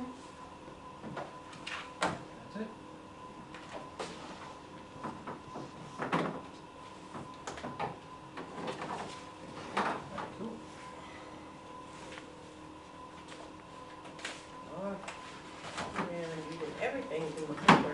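Papers rustle and shuffle.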